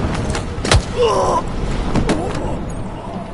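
A man grunts and groans in pain.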